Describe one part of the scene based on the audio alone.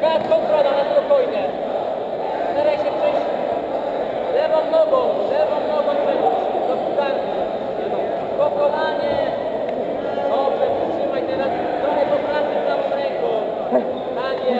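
A crowd of men and women shouts and cheers loudly in a large echoing hall.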